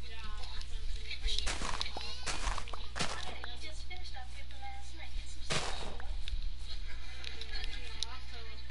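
Soft footsteps crunch on grass.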